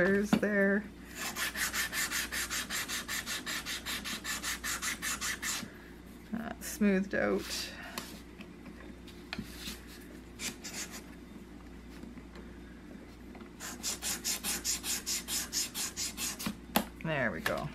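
A sanding block rubs quickly back and forth on wood.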